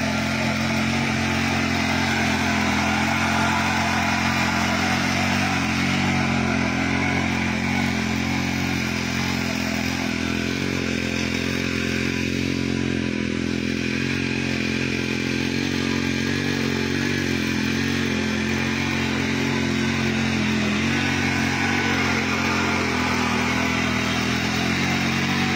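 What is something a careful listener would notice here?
A small petrol engine drones steadily as a tiller churns the soil.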